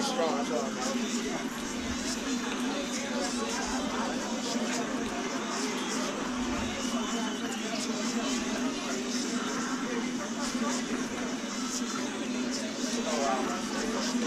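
A young man talks casually close to a microphone.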